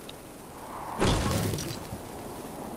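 A pickaxe swings and thuds against a pillar.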